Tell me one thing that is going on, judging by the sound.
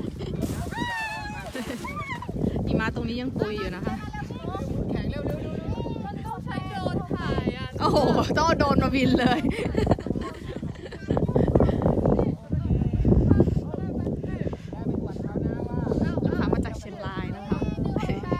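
A young girl squeals and chatters excitedly nearby.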